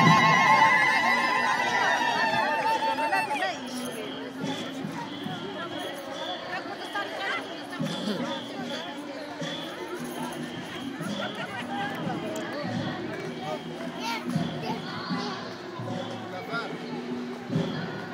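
A crowd murmurs and talks outdoors.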